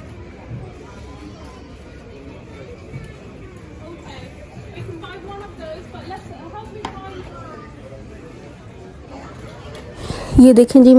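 A young child talks close by.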